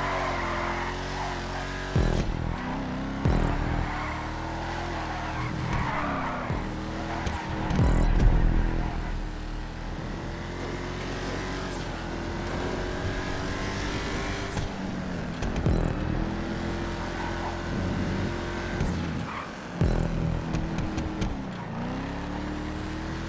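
A car engine roars steadily, its pitch rising and falling as it revs through gear changes.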